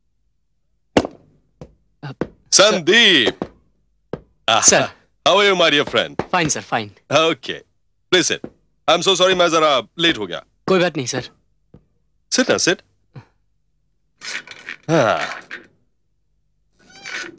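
Two men talk with animation, close by.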